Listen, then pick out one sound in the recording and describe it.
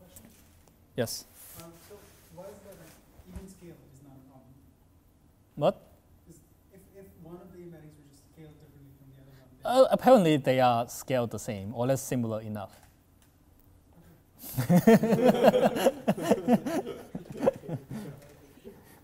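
A man lectures through a microphone, speaking calmly and then with more animation.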